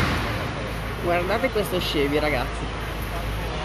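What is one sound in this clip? A woman talks briefly nearby.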